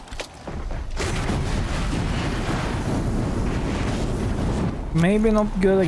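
A flamethrower roars with a rushing blast of flame.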